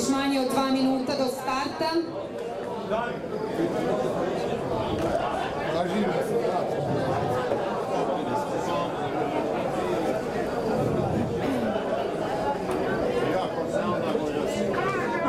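A crowd chatters in the distance outdoors.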